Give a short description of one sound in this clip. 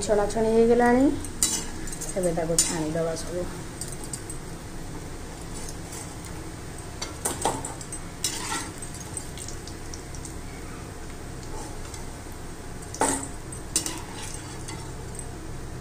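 Hot oil sizzles softly in a wok.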